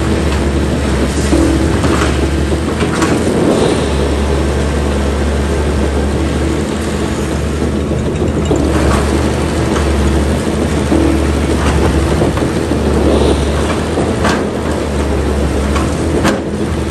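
Concrete cracks and crumbles as an excavator breaks apart a building.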